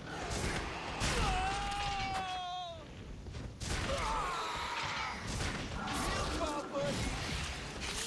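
A large monster roars and screeches.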